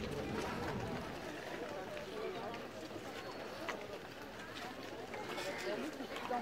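Footsteps shuffle on pavement as a crowd walks.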